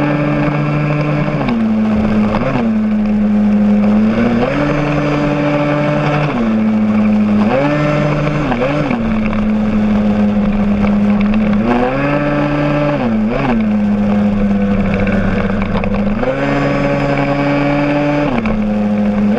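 A motorcycle engine hums steadily close by, its pitch stepping up and down.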